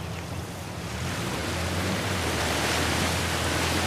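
Water splashes and rushes under tyres, growing louder.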